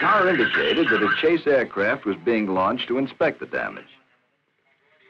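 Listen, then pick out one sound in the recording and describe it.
A man speaks calmly into a radio microphone.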